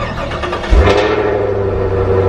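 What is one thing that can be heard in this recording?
A car engine roars to life with a sudden loud burst.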